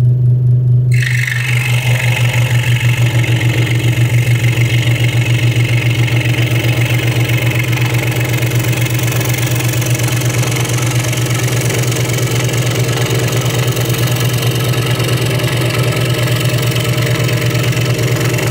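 A scroll saw blade rasps through thin wood.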